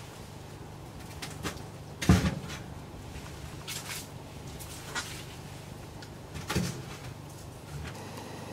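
Objects knock and rustle close by.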